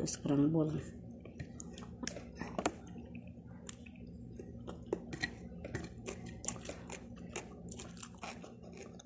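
A young woman chews food with wet, smacking sounds.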